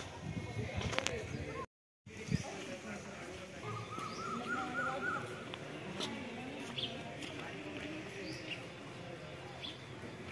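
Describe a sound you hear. Men and women chat at a distance outdoors.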